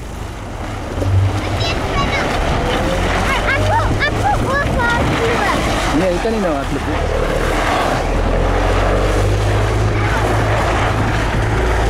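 A board scrapes and rumbles over loose dirt.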